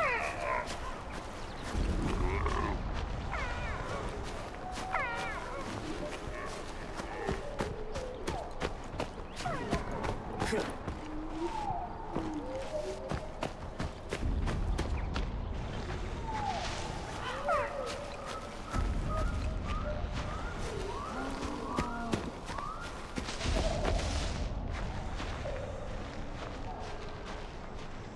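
Footsteps rustle through tall grass and undergrowth.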